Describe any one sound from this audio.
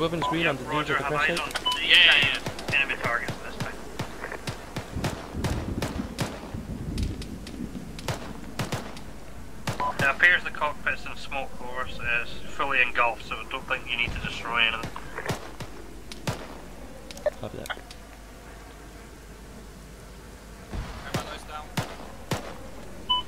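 Gunshots crack sharply in rapid, scattered bursts.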